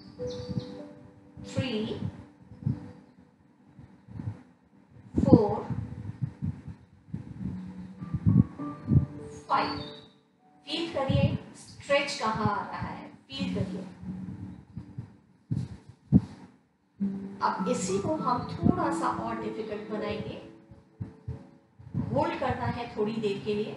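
A woman speaks calmly, giving instructions.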